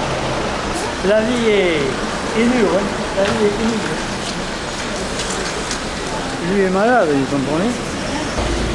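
An elderly man talks cheerfully nearby.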